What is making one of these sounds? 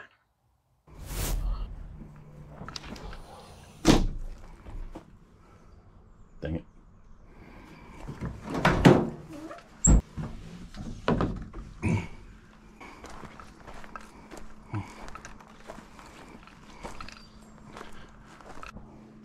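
Outdoors, footsteps crunch on dry ground and twigs.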